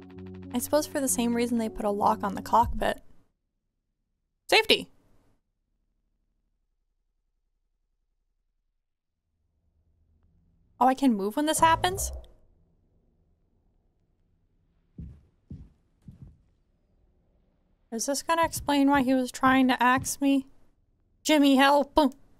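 A young woman speaks animatedly and close to a microphone.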